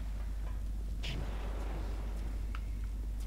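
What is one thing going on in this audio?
Flames burst and roar with a short whoosh.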